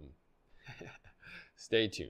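A middle-aged man laughs.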